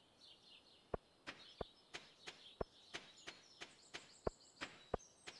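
Footsteps tap quickly on a dirt path.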